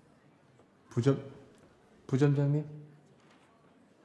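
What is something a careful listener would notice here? A man speaks briefly with a smile, close by.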